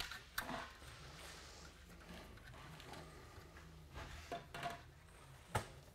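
A metal nut clicks faintly as it is turned by hand on a threaded rod.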